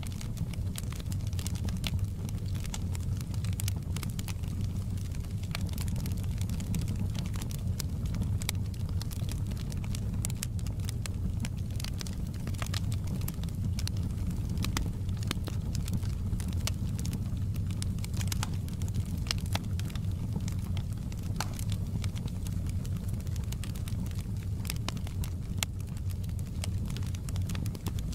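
A wood fire roars steadily with a low rumble.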